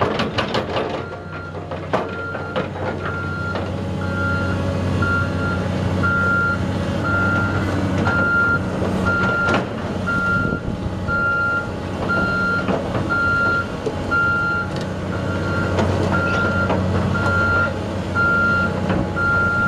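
A backup alarm beeps at an even pace.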